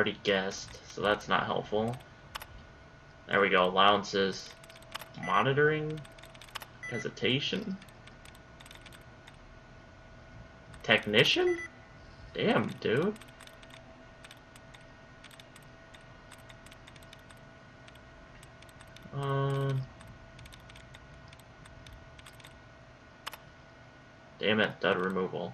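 Computer keys click softly and rapidly.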